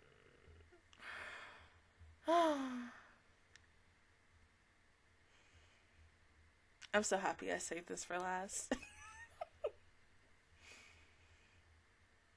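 A young woman laughs in bursts close to a microphone.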